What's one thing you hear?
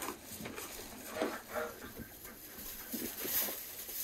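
Sheep munch and rustle in dry hay.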